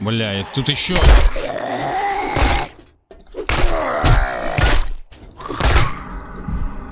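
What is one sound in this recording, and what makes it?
A club strikes a body with heavy, fleshy thuds.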